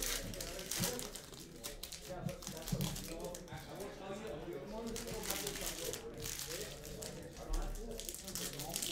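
Foil card wrappers crinkle and tear as hands open them.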